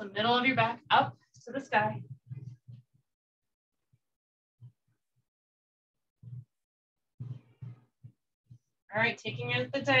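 A woman speaks calmly and clearly, close by.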